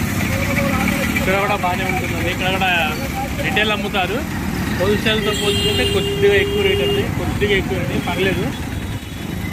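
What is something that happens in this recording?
People talk in a bustling crowd outdoors.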